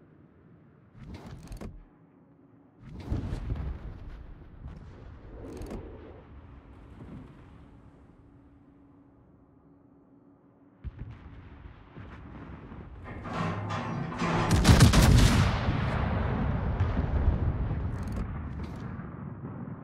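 Heavy guns fire with deep, loud booms.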